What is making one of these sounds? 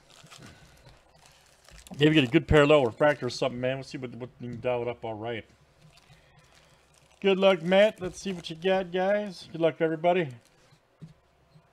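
Foil wrappers crinkle as hands shuffle card packs.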